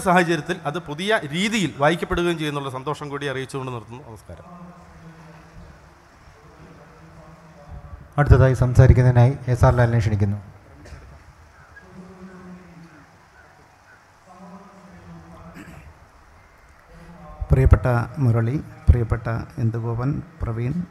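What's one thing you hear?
A middle-aged man speaks calmly into a microphone over loudspeakers.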